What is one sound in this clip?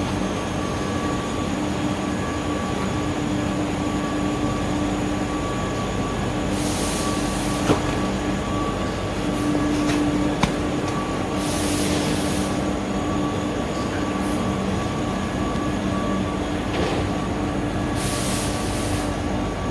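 Factory machinery hums steadily.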